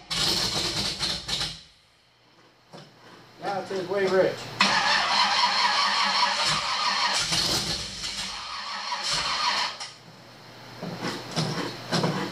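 An engine revs loudly in bursts.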